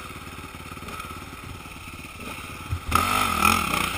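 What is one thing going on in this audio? A dirt bike engine idles close by.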